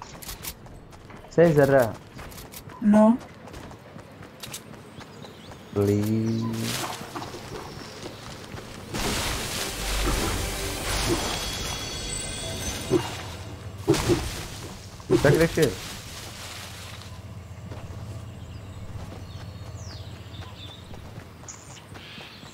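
Footsteps thud quickly on grass and dirt.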